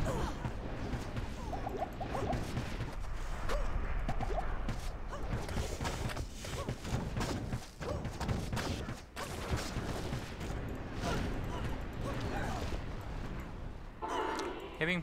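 Fire spells roar and crackle in battle.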